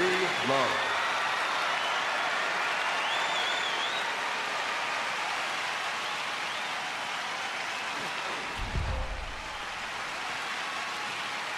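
A large crowd cheers and applauds loudly in a big stadium.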